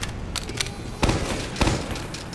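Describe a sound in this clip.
A heavy gun fires in short loud bursts.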